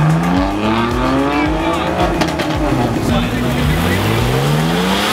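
A sports car engine roars close by, climbing in pitch and dropping at each gear change as the car accelerates past.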